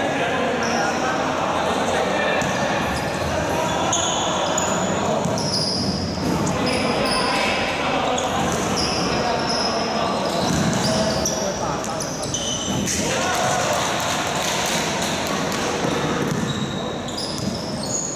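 Sneakers squeak on a wooden floor in a large echoing hall.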